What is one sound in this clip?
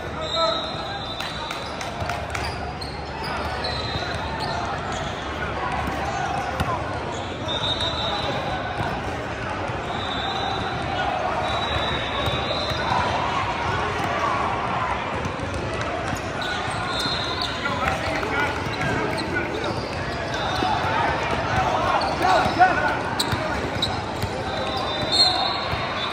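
Young players call out to each other across the gym.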